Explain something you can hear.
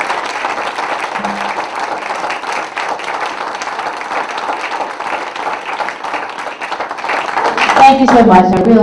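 A group of people applaud in a room.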